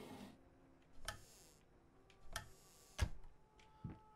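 A wooden cabinet door creaks open.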